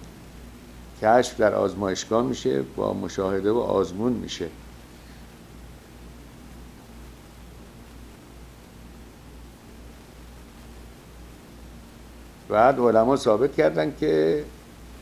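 A middle-aged man speaks with animation into a close microphone, pausing at length.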